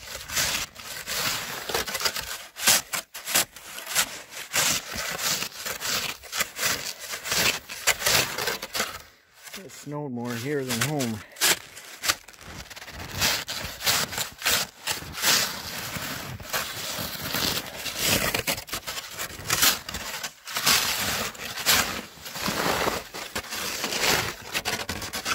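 A snow shovel scrapes and crunches through packed snow, again and again.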